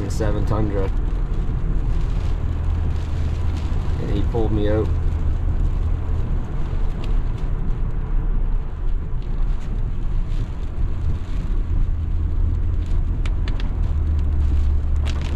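Tyres hiss on a wet, snowy road.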